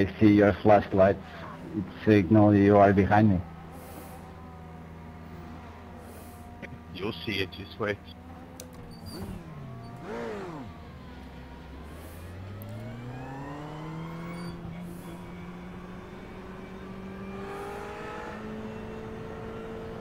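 A racing car engine hums and revs up through the gears.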